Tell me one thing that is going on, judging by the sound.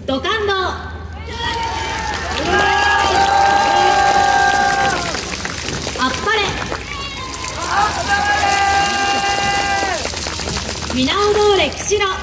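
A woman sings over loudspeakers outdoors.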